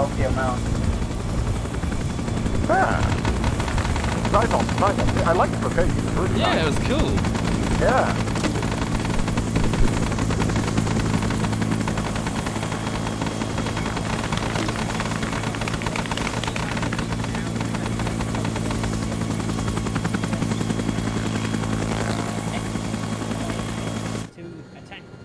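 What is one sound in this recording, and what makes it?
A helicopter's rotor thumps and its engine drones loudly and steadily.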